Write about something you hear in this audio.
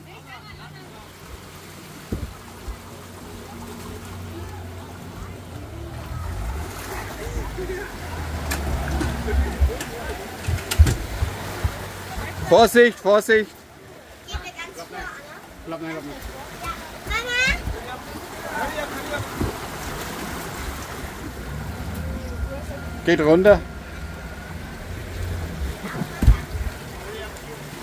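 Shallow waves wash against a boat hull and sand.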